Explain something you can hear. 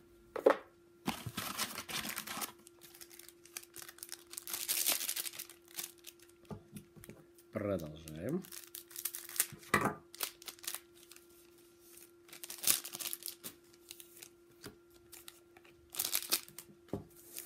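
Trading cards rustle and flick as they are shuffled.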